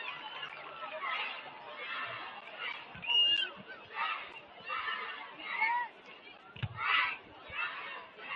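A group of young people shout a chant in rhythmic bursts.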